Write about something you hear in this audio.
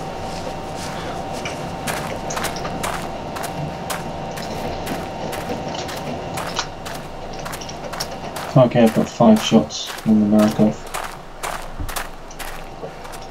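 Footsteps crunch quickly over grass and gravel.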